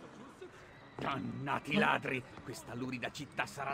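An elderly man exclaims angrily, close by.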